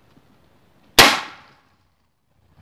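A single loud gunshot bangs close by and echoes briefly.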